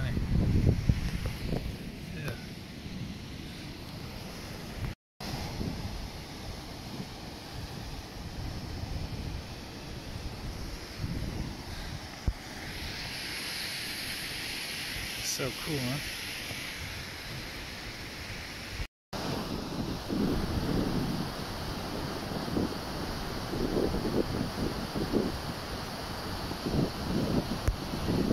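Wind gusts outdoors in rumbling bursts.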